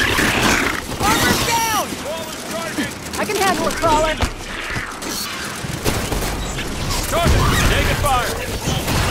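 Creatures shriek with high, swooping cries.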